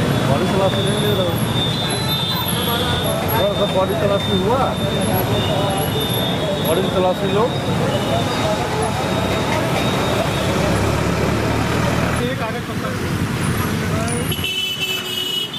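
Motorcycle engines idle and rumble nearby.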